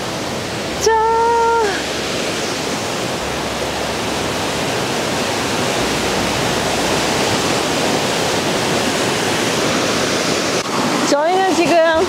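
A waterfall roars steadily close by.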